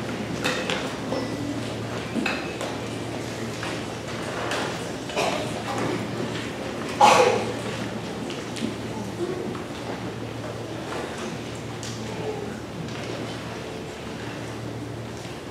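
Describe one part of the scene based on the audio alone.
Young musicians murmur and chatter quietly in a large hall.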